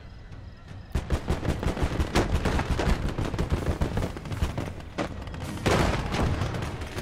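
Rapid gunfire rattles in a battle.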